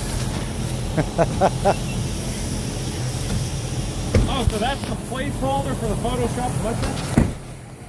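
A man talks loudly nearby outdoors.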